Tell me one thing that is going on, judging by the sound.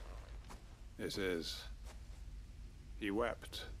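A man answers in a calm, low voice.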